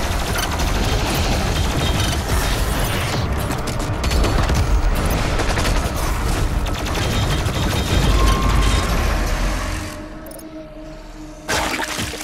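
Monsters roar and screech close by.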